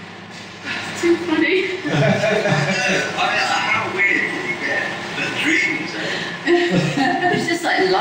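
A young woman laughs heartily.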